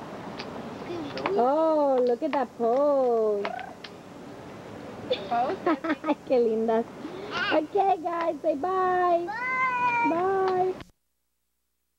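Young girls sing and chatter with high voices close by.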